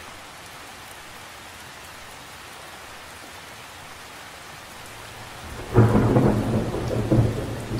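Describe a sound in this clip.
Raindrops patter softly on the surface of a lake.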